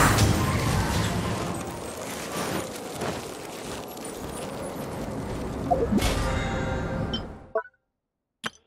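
Footsteps patter quickly across ice.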